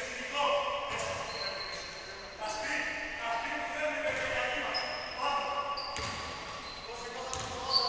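Men talk and call out in an echoing gym.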